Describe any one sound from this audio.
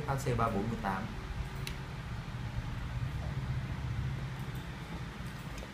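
A plastic hair clipper clicks and rattles as it is handled.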